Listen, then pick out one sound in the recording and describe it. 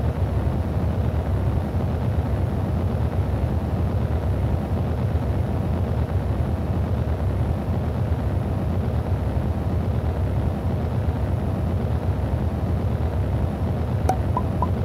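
A rocket engine roars with a steady, deep rumble.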